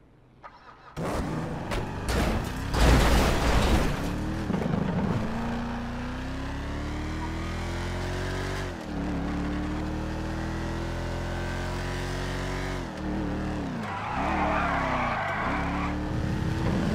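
A car engine revs and roars as the car speeds up, with the pitch rising and falling as it shifts gears.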